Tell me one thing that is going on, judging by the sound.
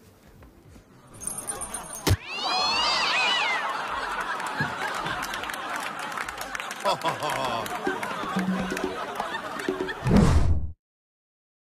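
A group of young men and women shout and cheer.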